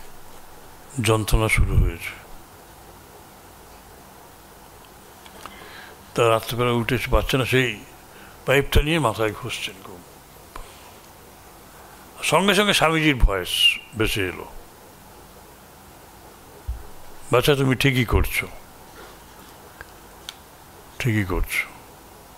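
A middle-aged man speaks with animation into a microphone, in short bursts with pauses.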